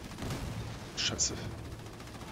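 Laser weapons fire in short bursts.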